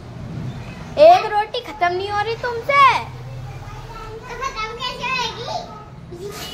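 A young child talks nearby in a high voice.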